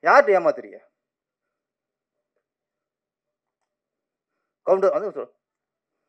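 A man speaks into a microphone with animation, in two short bursts.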